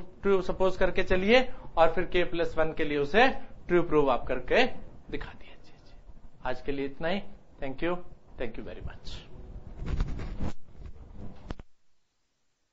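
A middle-aged man explains calmly into a clip-on microphone.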